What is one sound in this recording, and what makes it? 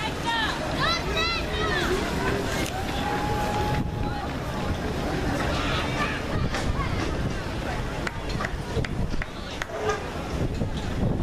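Spectators cheer and shout outdoors.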